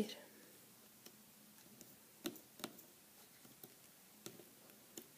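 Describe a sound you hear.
Small plastic clicks and taps come from a hook working rubber bands on a plastic loom.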